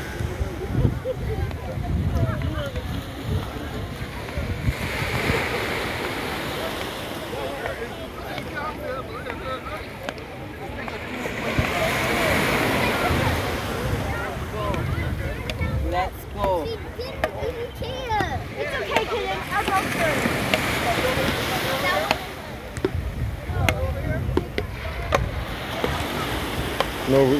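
Men, women and children talk and call out nearby.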